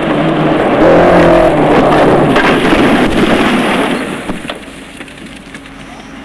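Tyres skid and crunch on loose gravel.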